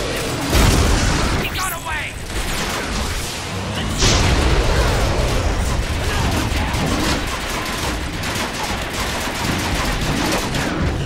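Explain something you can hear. A large mechanical creature stomps heavily.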